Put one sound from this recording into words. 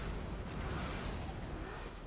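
A burst of gas hisses and whooshes.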